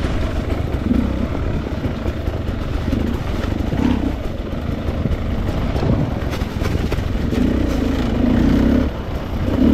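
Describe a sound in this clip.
A dirt bike engine revs and putters up close.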